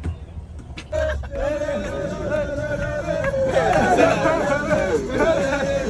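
Several young men chatter and shout loudly in a crowded space.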